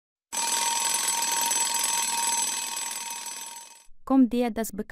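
An alarm clock rings loudly and steadily.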